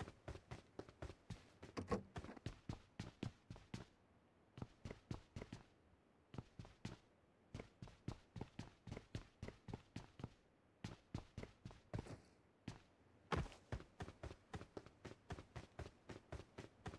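Quick footsteps thud steadily on wooden floors and paving, with short pauses.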